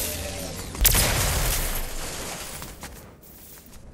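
Wind rushes past as a game character glides down, then fades.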